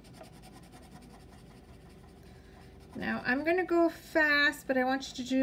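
A crayon scratches softly across paper.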